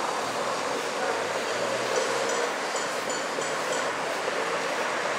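A car drives away down a street with a steady hum of tyres and engine.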